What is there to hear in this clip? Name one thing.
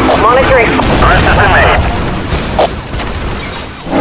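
A car crashes with a loud crunch.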